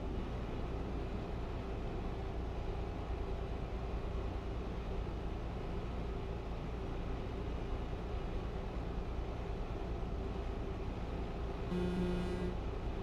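Tyres roll over the road.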